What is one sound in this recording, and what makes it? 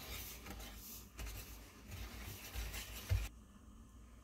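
A hand stirs dry crumbs in a metal bowl.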